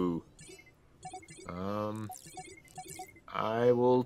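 Short electronic blips sound as cards are played in a game.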